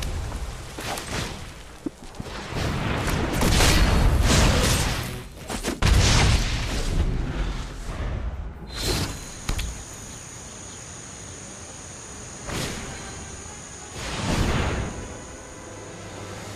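A card game plays short whooshing and chiming effects.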